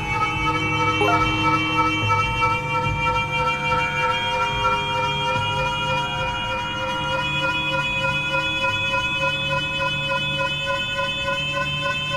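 A reactor core hums with a steady, layered electronic drone.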